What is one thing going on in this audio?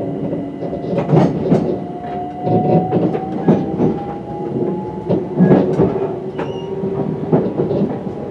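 A train rumbles along the track, its wheels clattering over rail joints.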